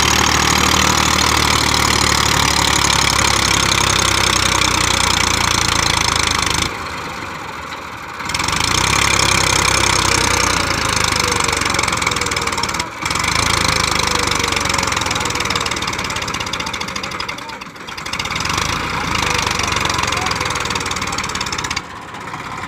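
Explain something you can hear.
A tractor engine roars loudly up close.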